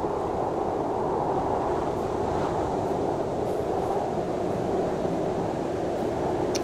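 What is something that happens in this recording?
Wind roars steadily through trees.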